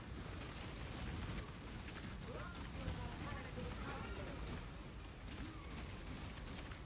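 Magic spells crackle and burst in rapid, dense blasts.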